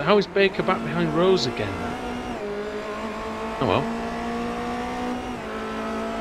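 A racing car engine drones at a steady high pitch.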